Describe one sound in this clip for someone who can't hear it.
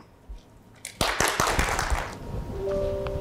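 A burst of applause rises and fades.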